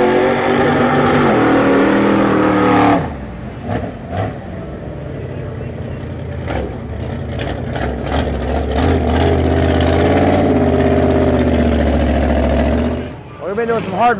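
A monster truck engine roars and revs loudly close by.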